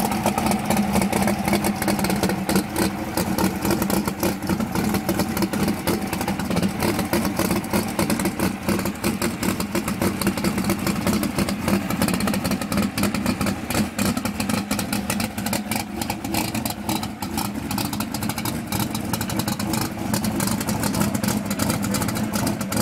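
A race car engine idles loudly with a rough, lumpy rumble close by.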